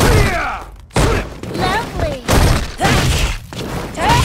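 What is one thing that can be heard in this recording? Punches and kicks land with heavy thuds in quick succession.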